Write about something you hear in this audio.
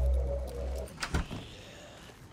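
A metal crate lid clicks open.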